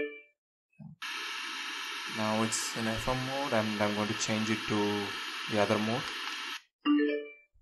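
A portable speaker plays a short chime-like tune.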